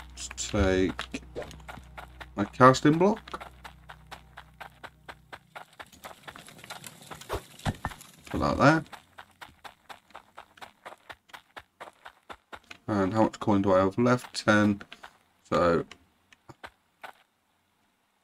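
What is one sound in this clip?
Footsteps tread quickly and steadily over stone and dirt.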